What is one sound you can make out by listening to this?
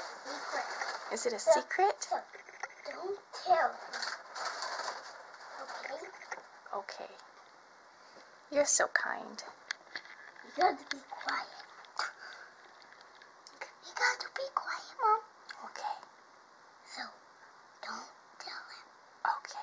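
A young girl speaks close by, softly and playfully.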